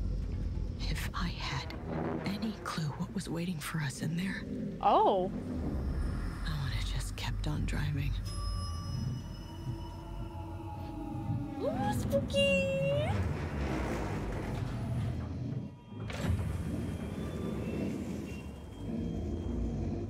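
A young woman talks and exclaims with animation close to a microphone.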